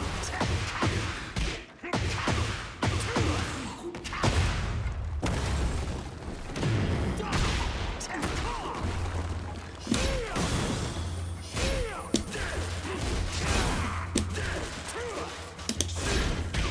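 Punches and kicks land with sharp thuds and cracks.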